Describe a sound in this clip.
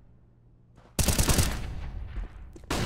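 A grenade bursts with a loud bang.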